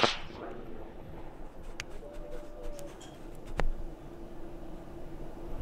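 A rocket engine rumbles far off.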